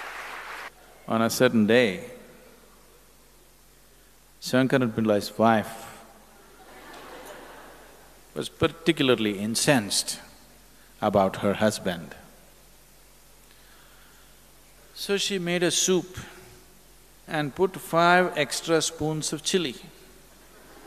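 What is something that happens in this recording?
An elderly man speaks calmly and with expression through a microphone.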